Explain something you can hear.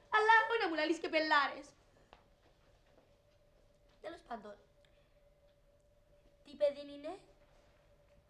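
A woman speaks with animation into a telephone, close by.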